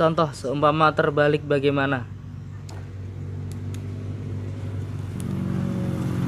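Plastic wire connectors click as they are pulled apart.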